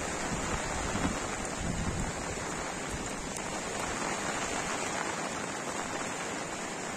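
Floodwater rushes steadily past.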